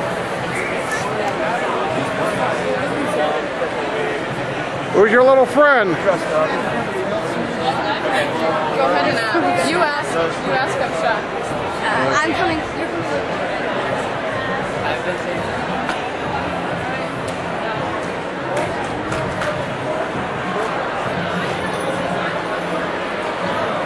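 A crowd chatters throughout in a large echoing hall.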